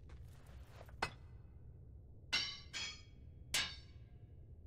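An ice axe strikes rock with sharp knocks.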